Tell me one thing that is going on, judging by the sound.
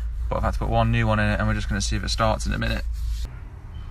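A young man talks calmly close to the microphone.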